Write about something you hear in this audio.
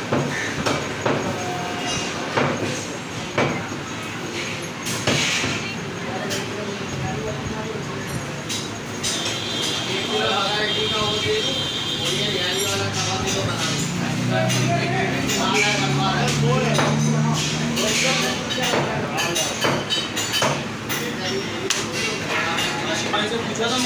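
A knife cuts and scrapes through raw meat.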